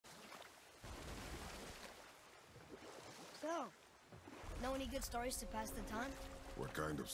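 Water splashes and laps against a small boat being rowed.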